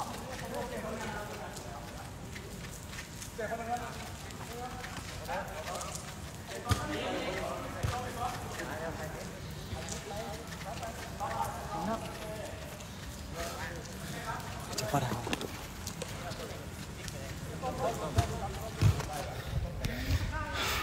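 Young men call out to each other outdoors.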